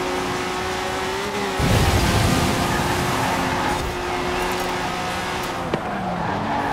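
Tyres hiss on tarmac at speed.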